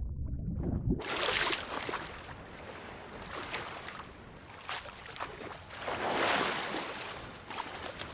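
Waves wash and splash gently, heard close by in the open air.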